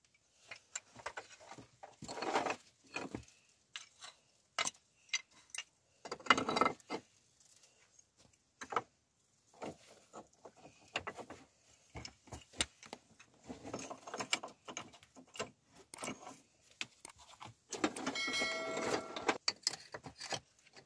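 Flat stones clack and scrape against each other as they are stacked into a wall.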